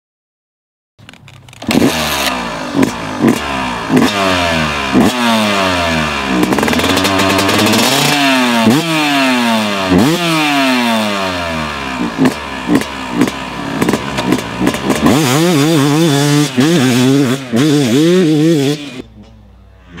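A motorcycle engine revs loudly up and down, again and again.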